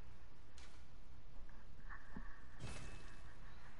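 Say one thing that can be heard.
A game menu plays a soft whooshing chime as an option is chosen.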